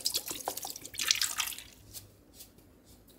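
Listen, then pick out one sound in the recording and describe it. Sugar pours with a soft rustle.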